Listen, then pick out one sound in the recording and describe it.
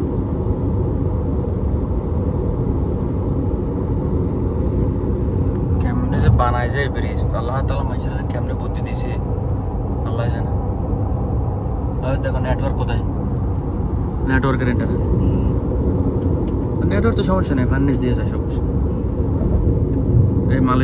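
A car drives along a road with a steady low rumble of tyres and engine.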